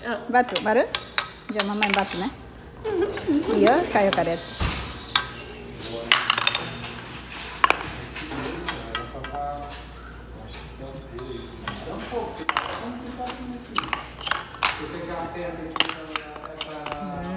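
Wooden pieces knock and clack on a hard table.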